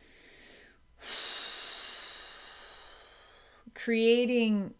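A woman breathes out slowly and audibly, the breath fading away.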